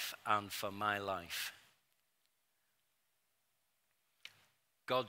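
A middle-aged man speaks steadily into a microphone, with pauses.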